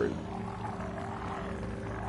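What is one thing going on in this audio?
Zombies groan and shuffle nearby.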